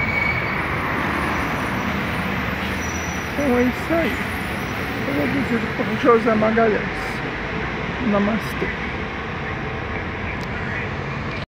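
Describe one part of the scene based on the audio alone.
A bus engine rumbles as the bus pulls away.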